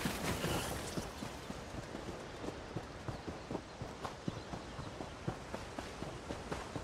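Footsteps thud quickly and evenly on soft ground.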